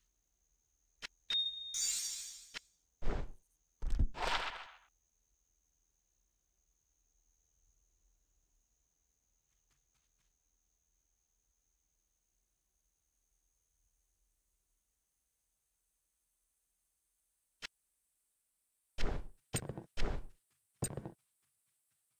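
Video game item sounds clunk as gear is moved into inventory slots.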